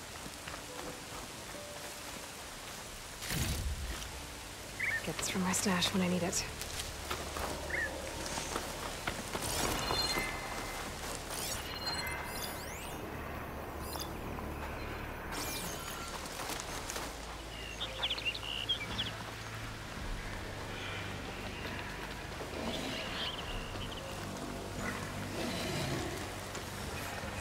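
Footsteps crunch on dry, gravelly ground.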